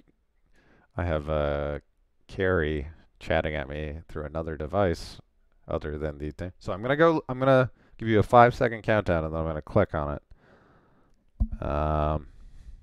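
A man speaks calmly and closely into a headset microphone.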